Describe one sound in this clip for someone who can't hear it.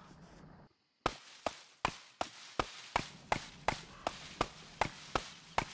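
An axe chops into wood with sharp, regular thuds.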